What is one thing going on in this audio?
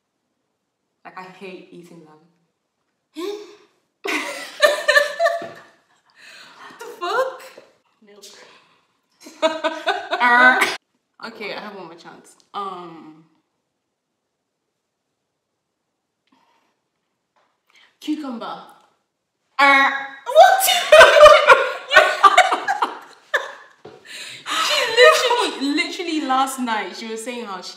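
A second young woman answers, chatting casually.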